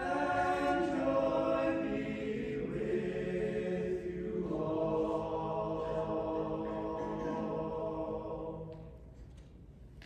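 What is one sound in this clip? A male choir sings in harmony in a large echoing hall.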